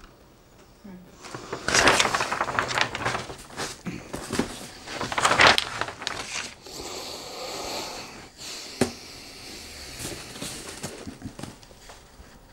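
A cardboard box scrapes and thumps on a table.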